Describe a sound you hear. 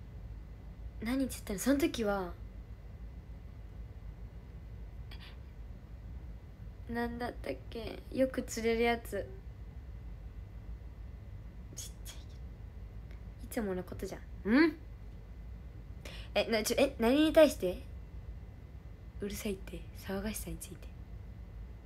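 A young woman talks close to a microphone, calmly and in short bursts.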